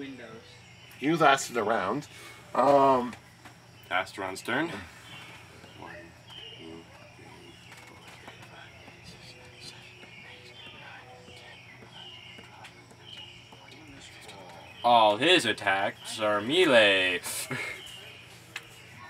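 A young man talks with animation nearby.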